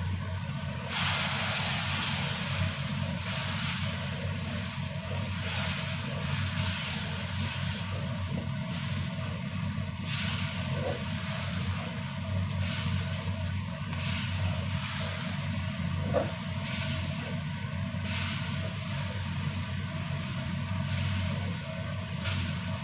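A spatula scrapes and stirs against a metal pan.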